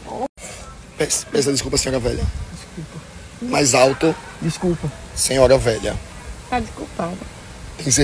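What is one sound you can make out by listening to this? A young man talks close by, casually.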